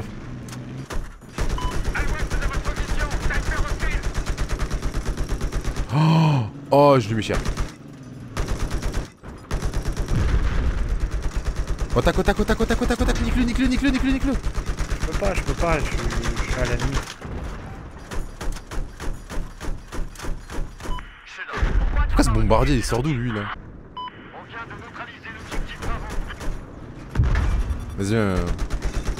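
Helicopter rotors thump overhead.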